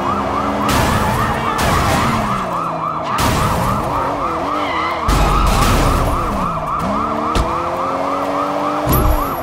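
A police siren wails rapidly and continuously.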